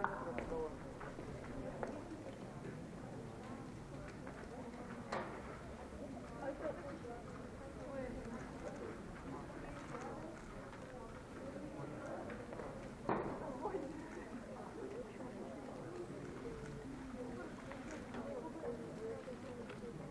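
Young people murmur quietly in a large echoing hall.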